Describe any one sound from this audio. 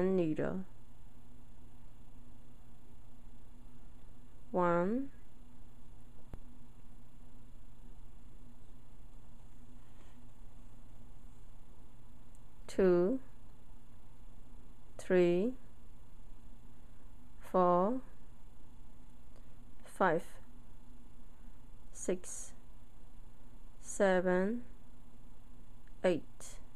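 Metal knitting needles click softly against each other.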